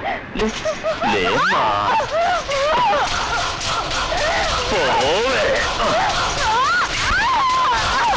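A woman screams in distress.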